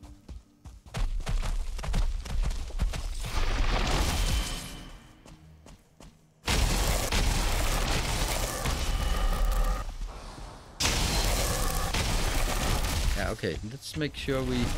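Heavy blows thud against a large beast.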